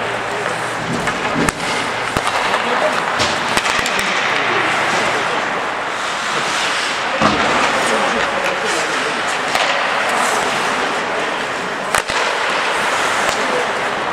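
Skates scrape and hiss across ice in a large echoing hall.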